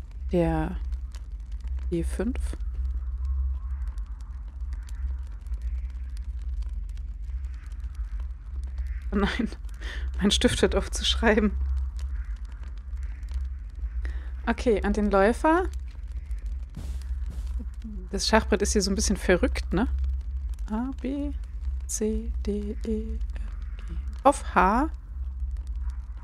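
A young woman talks with animation into a close microphone, in bursts with pauses.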